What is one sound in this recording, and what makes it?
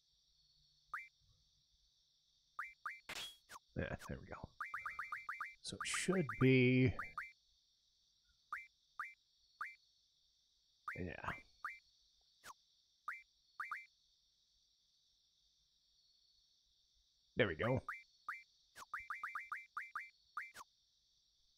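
Short electronic menu beeps click repeatedly as selections move.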